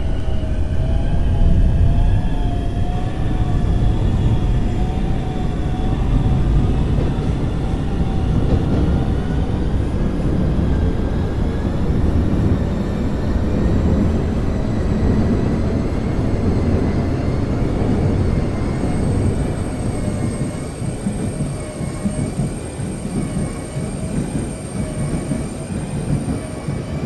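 A train's electric motor whines, its pitch shifting.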